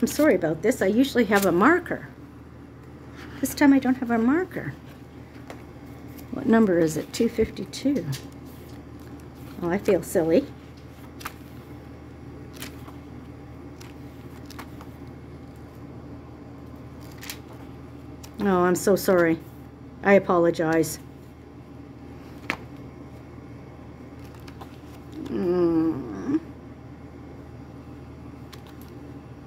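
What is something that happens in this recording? Pages of a book rustle as they are turned.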